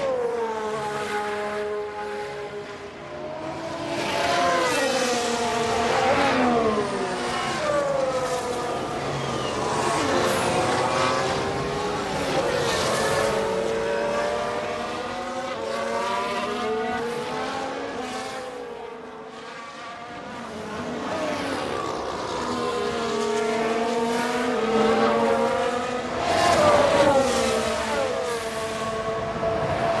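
Racing car engines scream and whine, rising and falling in pitch as the cars speed past.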